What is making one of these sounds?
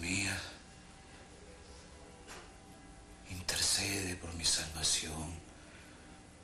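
A man speaks quietly and wearily, close by.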